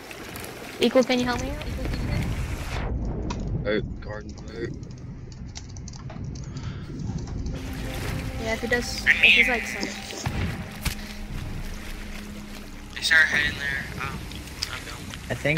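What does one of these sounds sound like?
Water sloshes and splashes as a swimmer moves.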